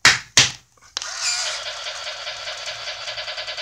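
A toy car gives off a steady electronic whirring hum.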